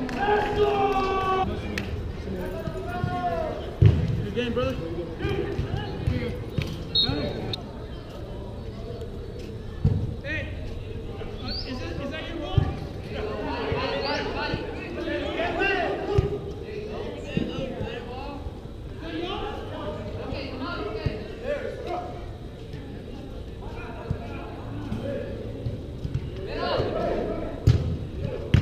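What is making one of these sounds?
Men shout and call to each other from a distance.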